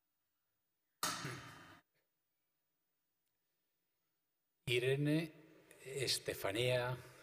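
A man at a panel speaks into a microphone.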